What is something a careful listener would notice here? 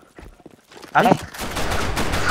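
A rifle fires loud, rapid shots.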